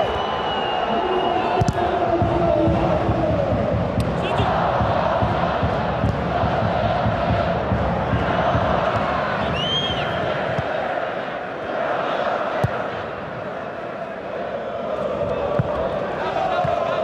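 A large stadium crowd chants and cheers steadily.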